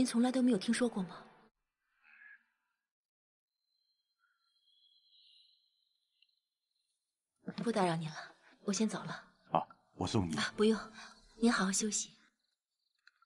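A young woman speaks in a worried, pleading voice.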